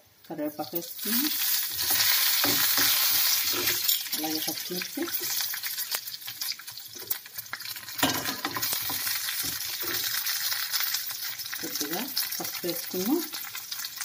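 Food sizzles loudly in hot oil.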